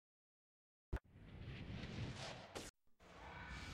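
A video game explosion bursts with a rushing whoosh.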